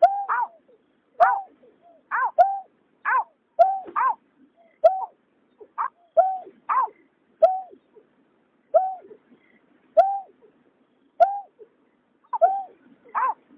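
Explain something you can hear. A bird calls again and again with short, hollow, rising notes.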